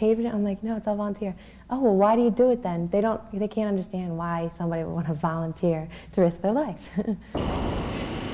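A young woman speaks calmly and cheerfully close to a microphone.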